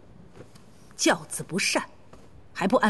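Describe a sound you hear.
A young woman speaks with disapproval.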